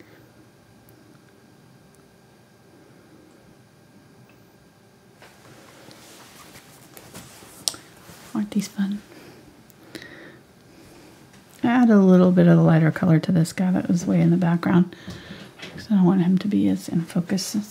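A paintbrush dabs and brushes softly on canvas.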